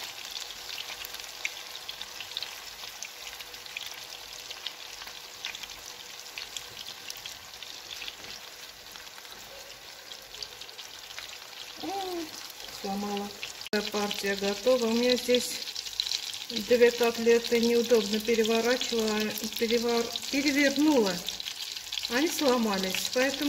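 Food sizzles and crackles in hot oil in a frying pan.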